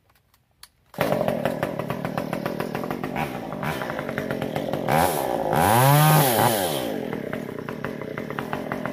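A chainsaw starts up and runs loudly, revving up and down.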